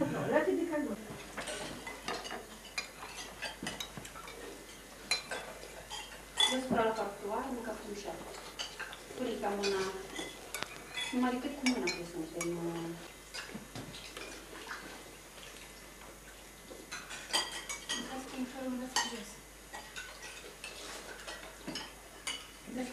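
Spoons clink against bowls.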